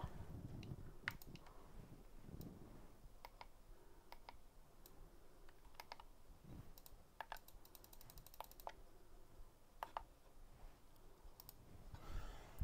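Buttons on a steering wheel click under a thumb.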